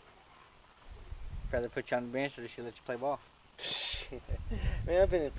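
A young man laughs and speaks up close.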